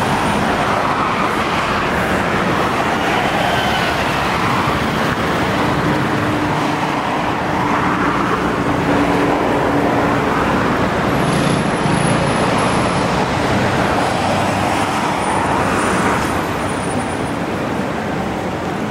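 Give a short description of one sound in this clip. Traffic rolls steadily along a street.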